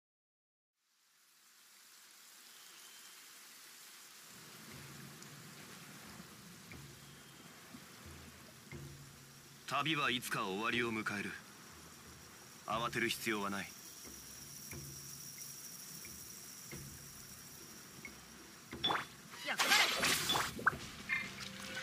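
Water rushes steadily in the distance.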